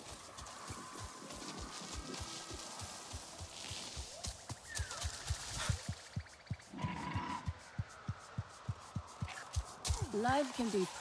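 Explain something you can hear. Footsteps tread steadily through leafy undergrowth.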